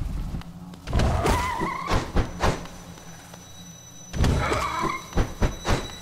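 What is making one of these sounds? A large creature lets out a wavering, rising cry.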